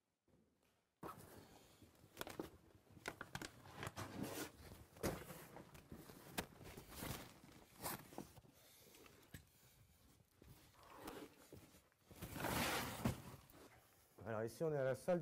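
A man crawls, scraping and rustling over loose gravel and sand.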